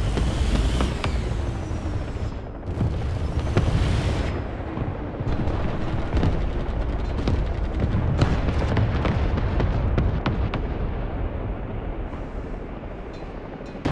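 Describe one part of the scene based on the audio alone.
Gunfire cracks and booms at a distance.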